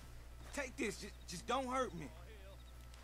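A man pleads in a frightened voice nearby.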